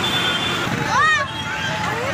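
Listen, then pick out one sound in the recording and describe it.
A motorbike engine hums as it passes by.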